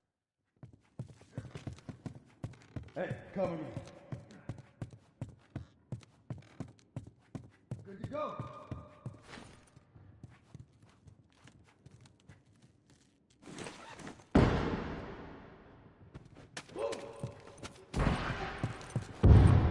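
Footsteps thud quickly on a hard floor.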